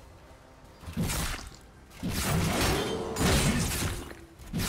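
Game spell effects crash and burst loudly as a fight breaks out.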